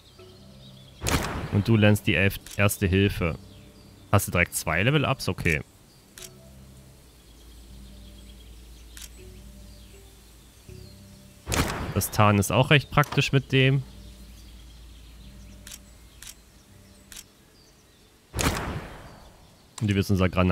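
A man talks with animation, close into a microphone.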